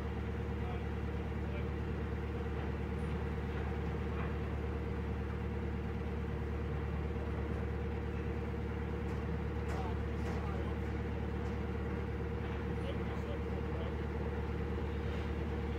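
A boat's diesel engine chugs steadily close by.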